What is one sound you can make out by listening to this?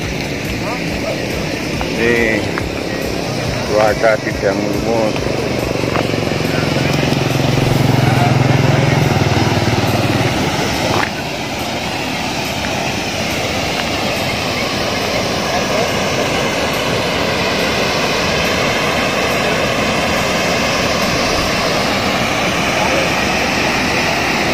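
Water rushes steadily over a weir.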